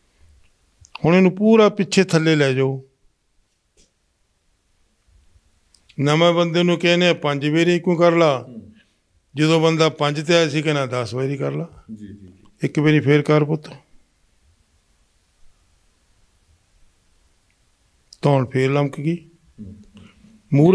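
A man speaks calmly nearby, in short bursts with pauses.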